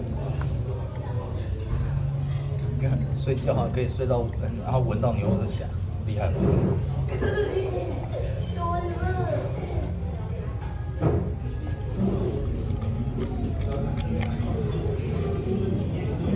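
A dog chews and slurps food from a metal bowl.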